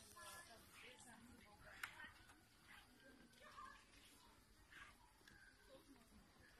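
Women talk quietly and casually nearby.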